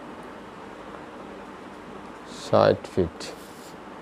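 A marker pen scratches on paper.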